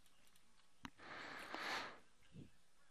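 Poker chips clatter as they slide into a pile.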